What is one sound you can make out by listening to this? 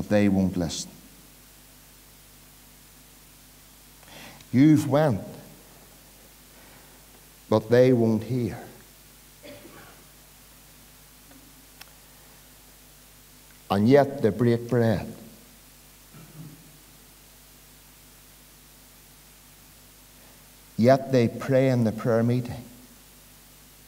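A middle-aged man preaches forcefully into a microphone in short bursts with long pauses, in a slightly echoing hall.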